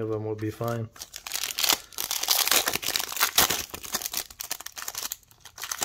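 A foil card wrapper crinkles and tears.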